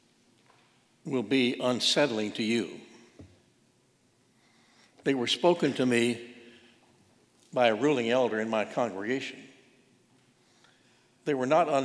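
An elderly man speaks slowly and calmly into a microphone, with pauses, in an echoing hall.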